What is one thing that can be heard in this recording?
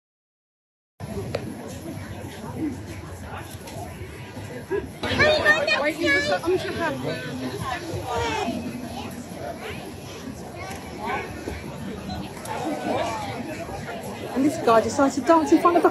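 A crowd murmurs and chatters outdoors on a busy street.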